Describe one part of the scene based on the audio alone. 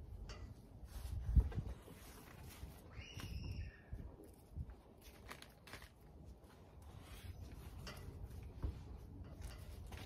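Gloved hands scrape and pat through loose soil.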